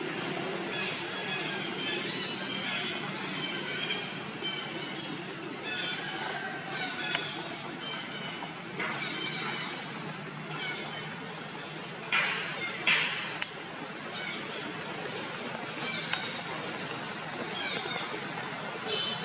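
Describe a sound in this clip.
An infant macaque squeaks and chirps.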